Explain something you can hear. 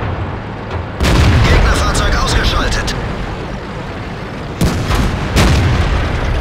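A tank cannon fires with a loud, booming blast.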